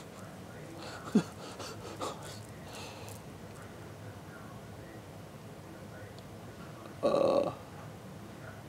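A young man speaks briefly and casually, close by.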